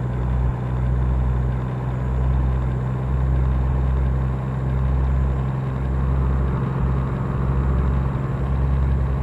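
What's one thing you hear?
A truck engine hums with a low, steady drone.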